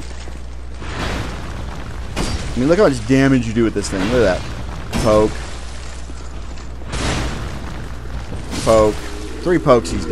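Metal weapons clang and strike in a fight.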